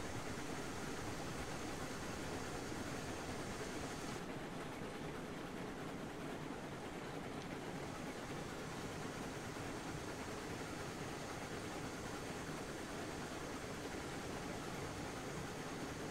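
Train wheels rumble and clatter over the track.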